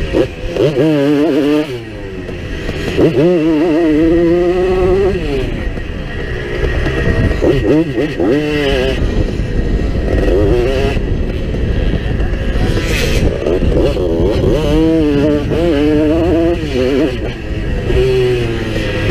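A motorcycle engine revs up and down close by, its pitch rising and falling.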